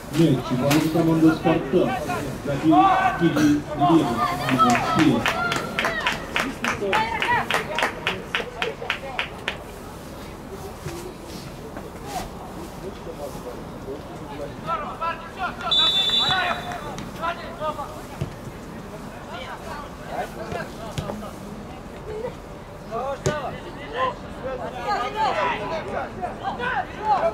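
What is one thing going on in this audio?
Young men shout and call to each other outdoors at a distance.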